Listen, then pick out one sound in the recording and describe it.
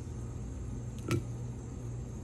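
A fork clicks against a ceramic plate.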